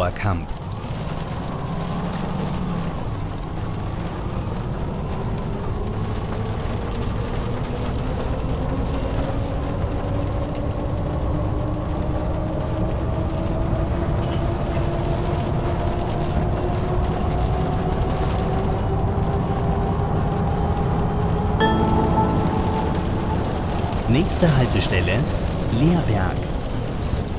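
A bus engine hums low and rises steadily in pitch as the bus speeds up.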